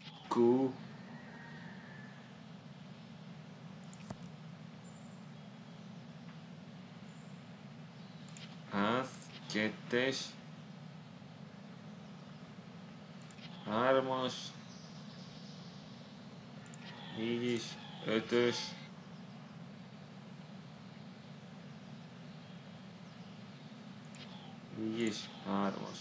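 A young man speaks calmly in short bursts close to a microphone.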